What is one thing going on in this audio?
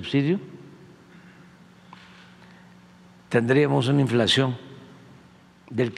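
An older man speaks calmly into a microphone in a large room.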